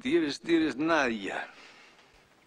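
A middle-aged man speaks with feeling, close by.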